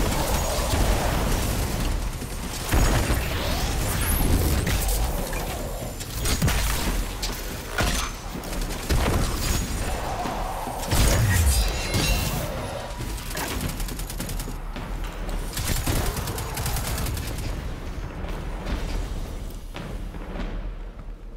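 Gunfire and energy blasts crackle and boom in rapid bursts.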